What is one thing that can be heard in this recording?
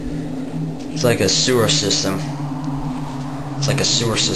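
A young man speaks casually, close to the microphone.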